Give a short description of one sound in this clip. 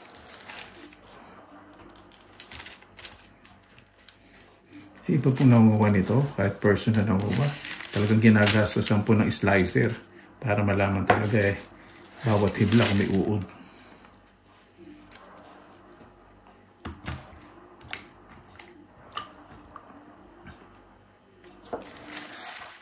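A knife cuts through firm food on a board.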